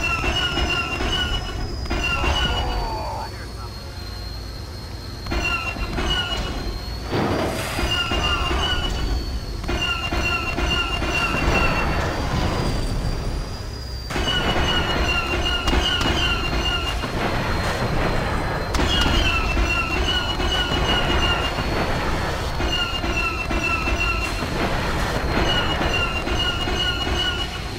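Laser cannons fire in rapid bursts of zapping shots.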